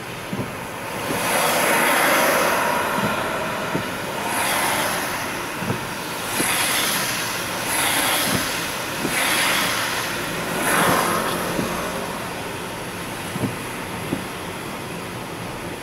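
A car's tyres hiss on a wet road, heard from inside.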